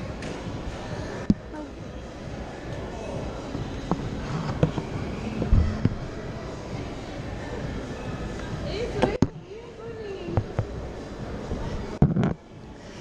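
A crowd murmurs in a large echoing indoor space.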